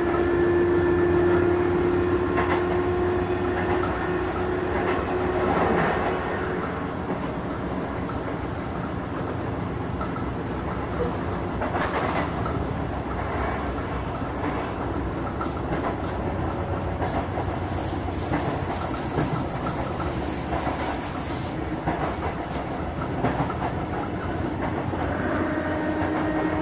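An electric train hums steadily while standing.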